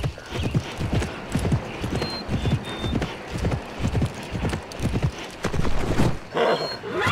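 A horse gallops with quick, heavy hoofbeats.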